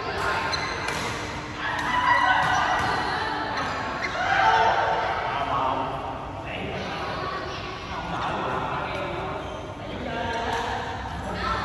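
Shuttlecocks are struck with rackets, with sharp pops echoing in a large hall.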